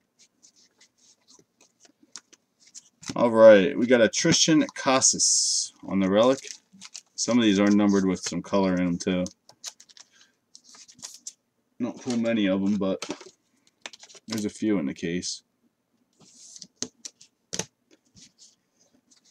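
Cardboard trading cards rustle and click as they are handled.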